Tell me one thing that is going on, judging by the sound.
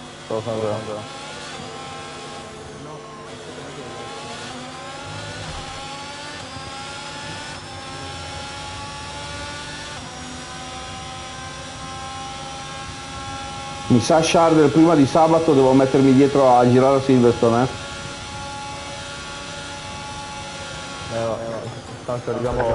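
A racing car engine whines loudly, rising in pitch as it speeds up through the gears.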